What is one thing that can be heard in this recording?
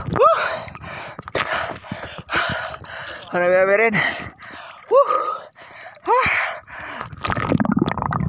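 Small waves slosh and splash close by.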